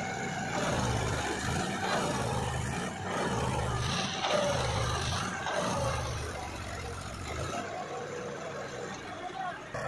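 A tractor engine labours loudly, revving in repeated surges.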